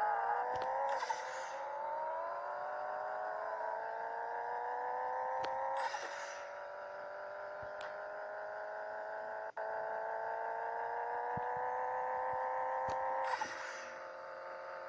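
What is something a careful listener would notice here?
A turbo hisses sharply with each gear change.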